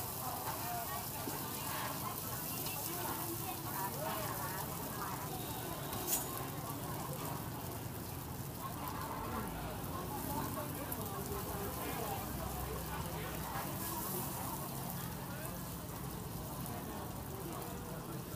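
Batter sizzles and crackles in hot oil.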